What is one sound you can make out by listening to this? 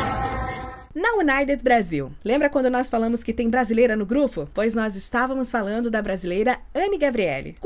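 A young woman speaks and laughs with excitement.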